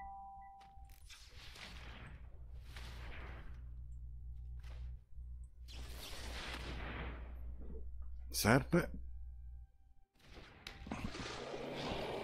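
Soft magical whooshes sweep past as cards are played.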